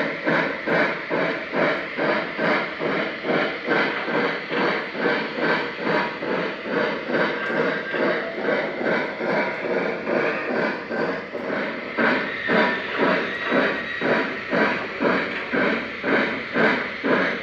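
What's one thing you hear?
A steam locomotive chuffs in a steady, quick rhythm.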